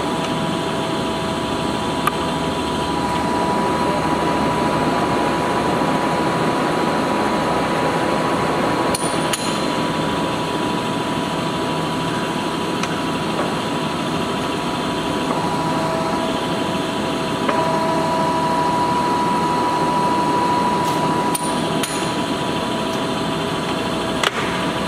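A large lathe runs with a steady whirring hum.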